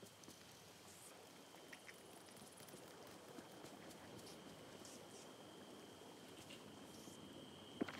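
A fire crackles nearby.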